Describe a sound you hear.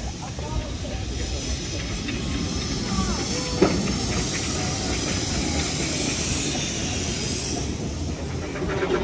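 Steam hisses loudly from a locomotive close by.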